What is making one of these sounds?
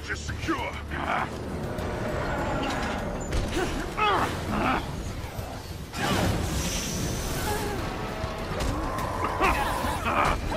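Metal clangs and crashes in a fight.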